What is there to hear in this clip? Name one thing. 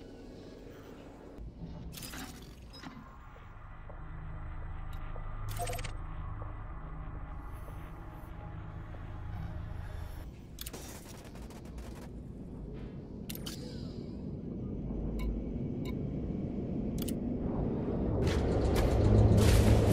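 Electronic menu beeps click now and then.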